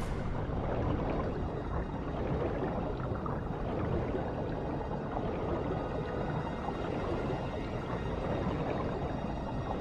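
A swimmer paddles steadily through water.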